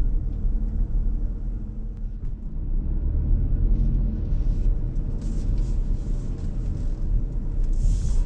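A car engine hums low and steady from inside the cabin.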